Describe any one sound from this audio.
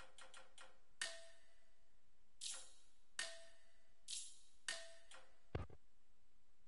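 Short menu blips sound a few times.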